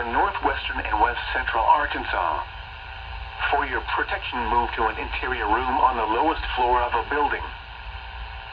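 A computerized voice reads out through a small radio speaker.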